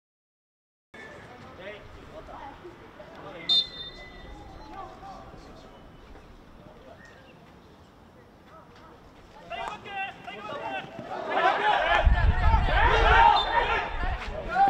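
Male players shout to each other across an outdoor pitch.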